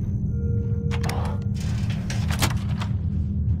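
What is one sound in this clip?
A heavy door slides open with a mechanical whoosh.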